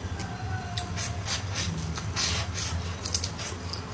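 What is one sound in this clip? A young woman slurps food loudly.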